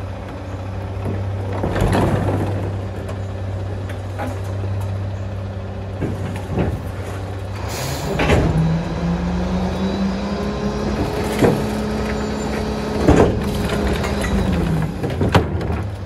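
A truck's lift arm whines as it hoists and tips a bin.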